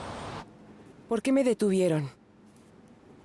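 A woman speaks quietly.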